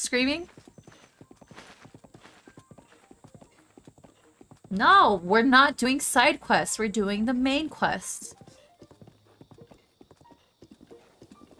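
Horse hooves thud rapidly.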